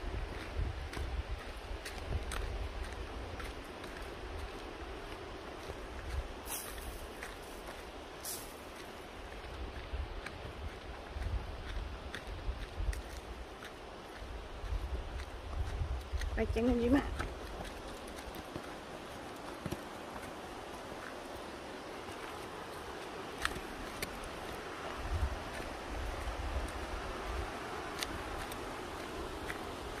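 Footsteps crunch on a dirt trail.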